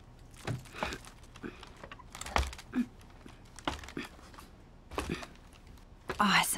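Hands and knees thump softly on a wooden floor as someone crawls.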